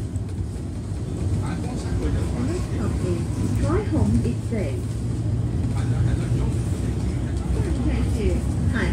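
Traffic passes by on a road.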